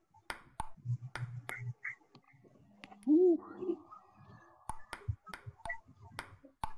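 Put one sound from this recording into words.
A ping-pong ball clicks sharply back and forth off paddles and a table.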